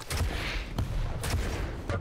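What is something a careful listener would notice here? A rocket launcher fires with a loud blast.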